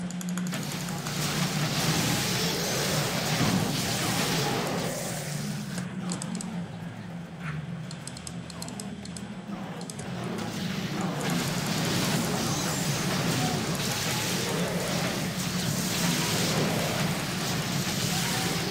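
Weapons clash and magic effects crackle in a fantasy battle.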